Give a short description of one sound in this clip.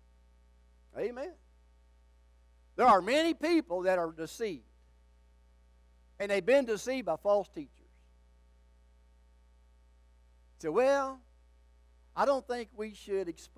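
An elderly man speaks with animation into a microphone, in bursts with pauses.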